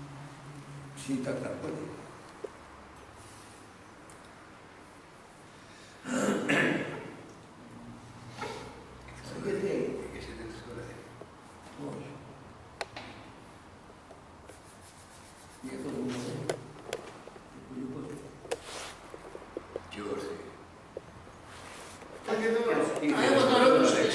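Elderly men talk nearby in short bursts.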